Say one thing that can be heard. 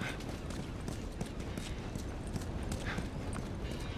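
Footsteps run on gritty ground.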